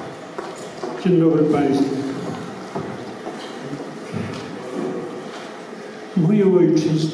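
An elderly man speaks through a microphone.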